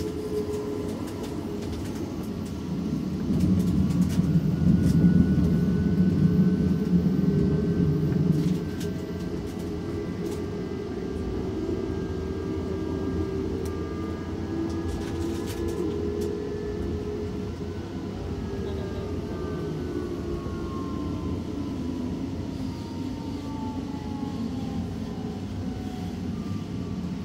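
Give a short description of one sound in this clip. A train's wheels squeal faintly on the rails.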